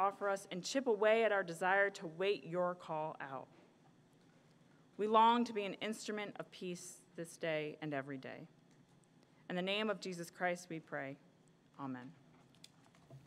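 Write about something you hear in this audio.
A young woman speaks calmly into a microphone, heard through loudspeakers.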